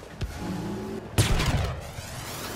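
A gun fires with a sharp, loud blast.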